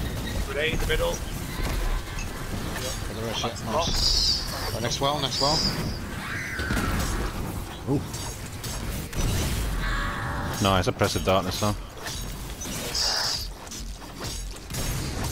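Energy weapons fire with sharp zapping bursts.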